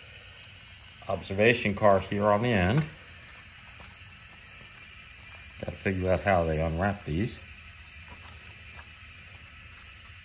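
Plastic packaging crinkles and rustles under fingers.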